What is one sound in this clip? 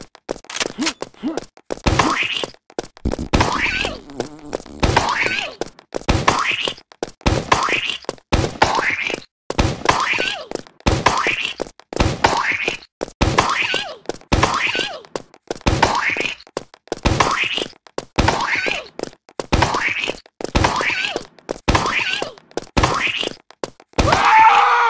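A game launcher fires again and again with a sharp popping blast.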